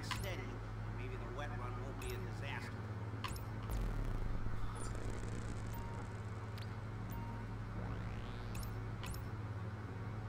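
Short electronic chirps sweep quickly in pitch, again and again.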